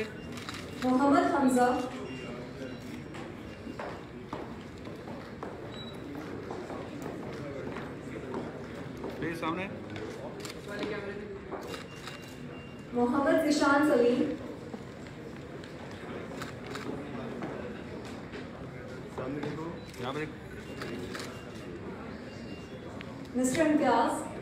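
A woman announces in a large echoing hall.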